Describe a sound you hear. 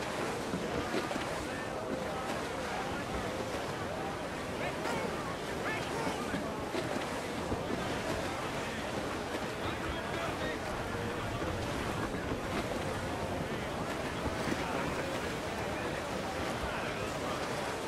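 Wind blows steadily through the rigging.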